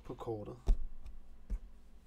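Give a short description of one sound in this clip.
A man speaks quietly close to a microphone.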